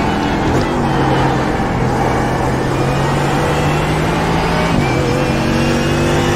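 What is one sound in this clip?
A racing car engine revs back up as the car accelerates.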